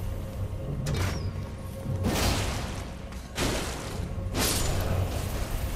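A sword swings and strikes.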